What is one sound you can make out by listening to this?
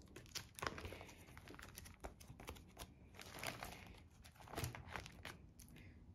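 Plastic binder pages rustle as they are turned.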